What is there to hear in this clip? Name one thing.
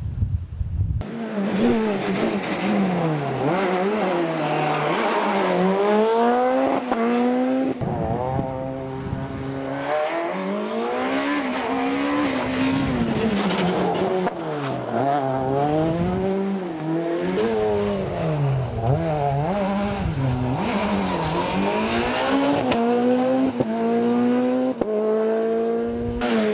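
A rally car engine revs hard and roars as it shifts gears through bends.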